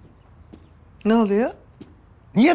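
A woman speaks briefly nearby.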